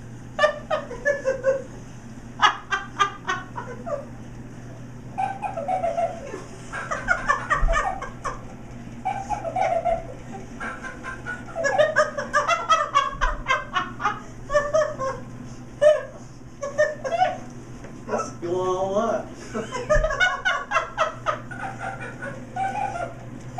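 An elderly woman talks and laughs nearby in a relaxed, chatty way.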